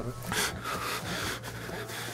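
Footsteps run quickly over leaves and twigs.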